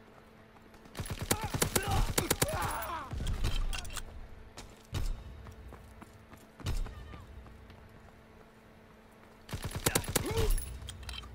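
Rapid gunfire crackles in short bursts.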